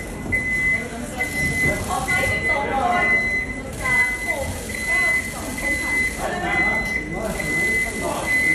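People chatter nearby.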